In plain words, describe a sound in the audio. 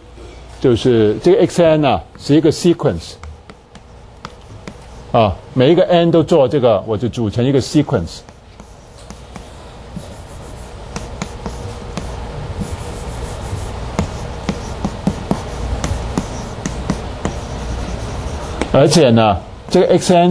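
A man lectures calmly through a microphone in an echoing room.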